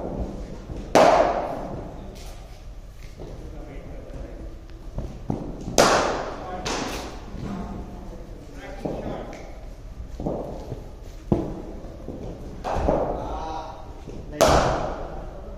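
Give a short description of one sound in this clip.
A cricket ball cracks off a bat in an echoing indoor net.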